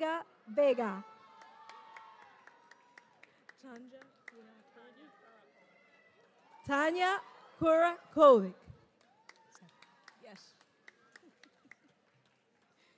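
A few people clap lightly.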